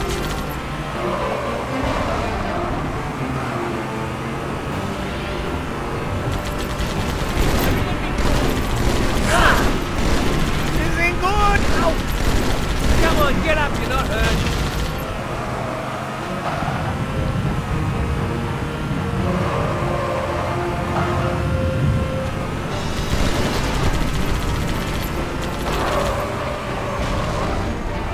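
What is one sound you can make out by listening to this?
A vehicle engine rumbles steadily as it drives.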